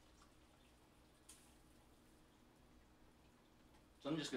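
A spoon clinks against a pot.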